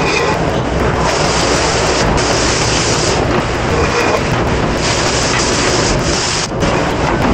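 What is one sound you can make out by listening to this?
Water from a spray nozzle drums on a plastic cutting board.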